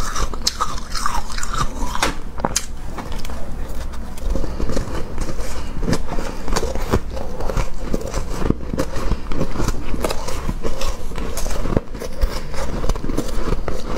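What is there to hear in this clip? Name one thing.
A young woman chews and crunches shaved ice close to a microphone.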